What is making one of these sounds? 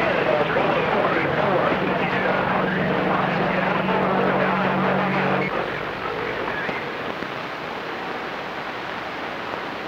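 Radio static hisses and crackles from a loudspeaker.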